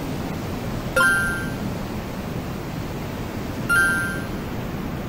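A bright electronic chime confirms a menu choice.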